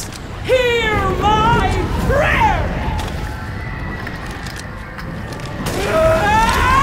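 A boy talks excitedly into a microphone, his voice rising and falling.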